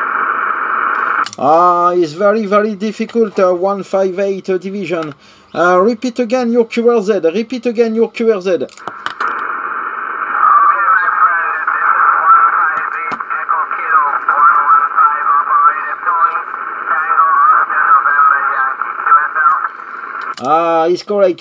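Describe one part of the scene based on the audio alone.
A radio loudspeaker hisses with static.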